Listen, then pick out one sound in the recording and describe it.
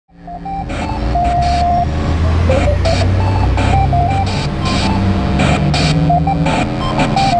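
A man plays a lively melody on a wind instrument through an amplifier.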